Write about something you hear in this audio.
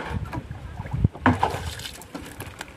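A fish splashes in the water close by.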